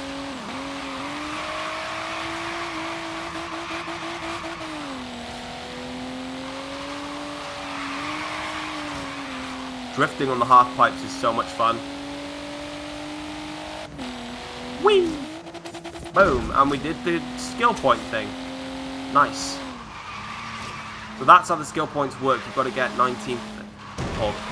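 A car engine hums steadily at high speed, rising and falling in pitch with gear changes.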